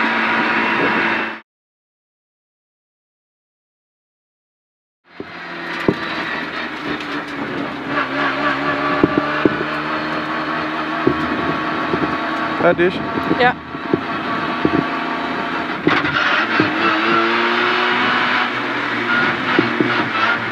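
A rally car engine revs and roars from inside the cabin.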